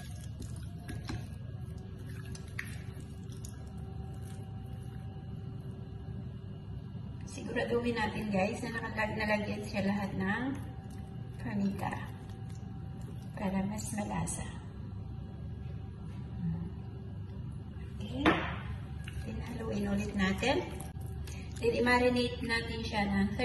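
Raw chicken pieces squelch softly as hands turn them.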